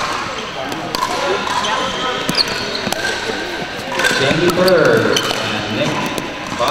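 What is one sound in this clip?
Paddles pop against a plastic ball in a large echoing hall.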